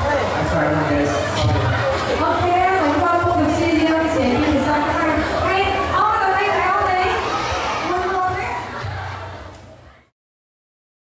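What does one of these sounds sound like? A crowd laughs and chatters nearby.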